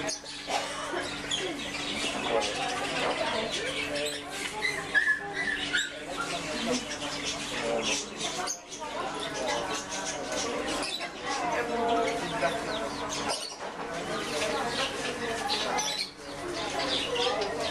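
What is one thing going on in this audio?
Mice scurry and rustle through wood shavings.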